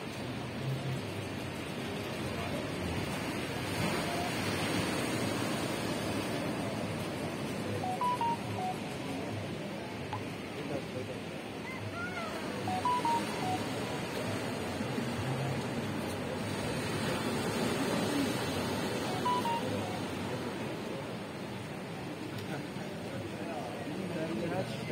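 Waves wash and break steadily against rocks below, outdoors in wind.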